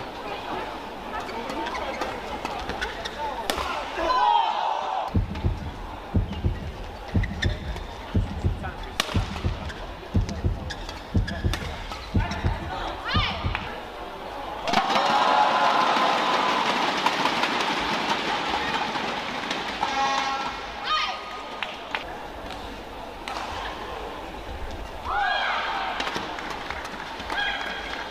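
Rackets strike a shuttlecock back and forth with sharp smacks.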